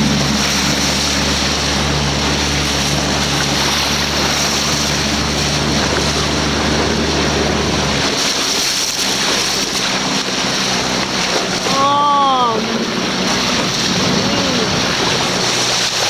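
Water hisses and rushes steadily, heard underwater.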